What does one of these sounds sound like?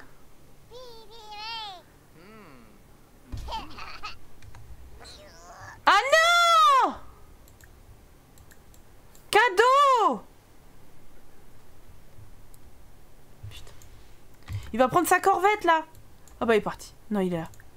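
Game characters babble in high, sing-song voices.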